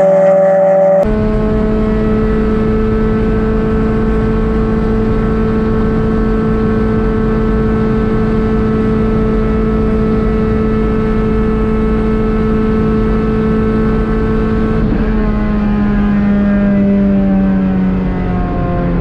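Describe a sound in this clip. A car engine hums steadily from inside the car, then slowly drops in pitch.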